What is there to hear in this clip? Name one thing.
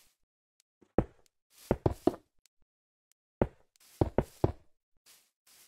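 Blocks are placed with soft thuds.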